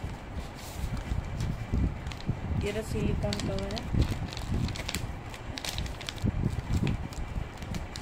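Plastic wrapping crinkles as it is handled.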